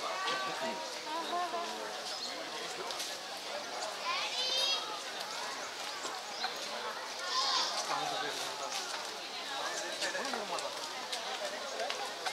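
Leaves rustle as a giraffe tears them from a branch.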